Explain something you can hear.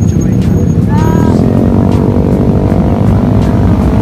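A motorcycle engine revs up and its pitch rises.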